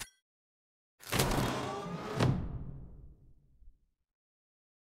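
A game whooshes and booms as a new round begins.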